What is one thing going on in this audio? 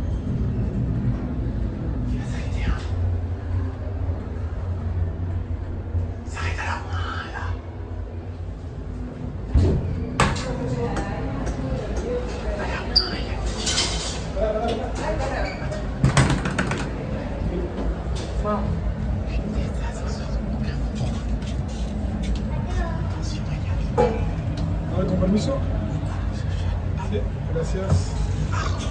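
An elevator car hums and rumbles steadily as it moves.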